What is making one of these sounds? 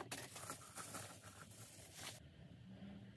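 Bubble wrap crinkles in someone's hands.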